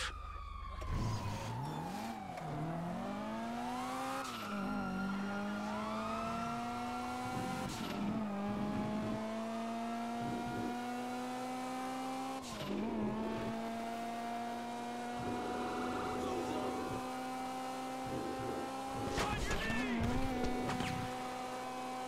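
A car engine revs hard, climbing and dropping in pitch as it shifts through gears.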